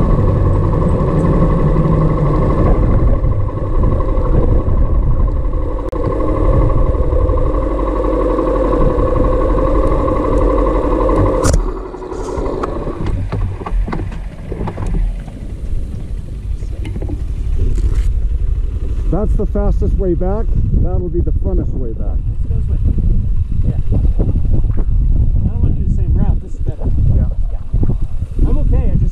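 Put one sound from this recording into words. Tyres crunch over a gravel road.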